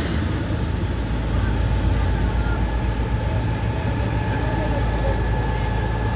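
Water sprays from a hose in a steady hiss.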